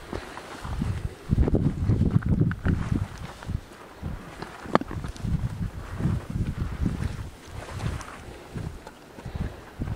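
Shrubs rustle and scrape against a hiker.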